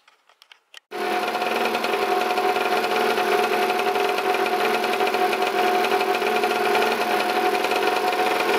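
A scooter engine idles loudly and steadily close by.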